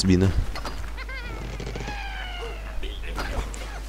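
A bird squawks as it is launched.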